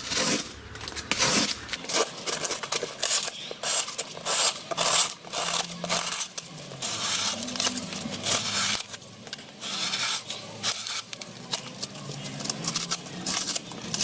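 A knife blade slices and scrapes through stiff cardboard in short, repeated strokes.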